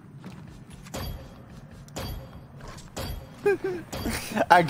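A countdown timer beeps once each second.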